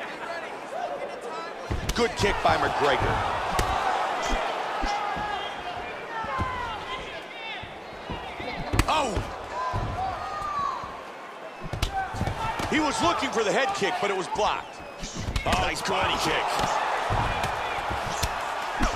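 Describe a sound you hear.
A crowd cheers and murmurs in a large arena.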